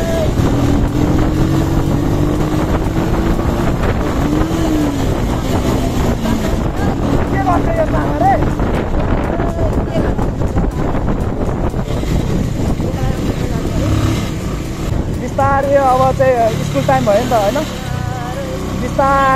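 A motorcycle engine hums steadily up close as it rides along a road.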